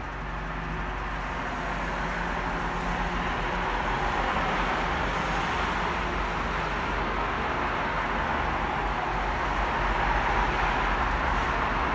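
A train's wheels rumble and roar louder along the track.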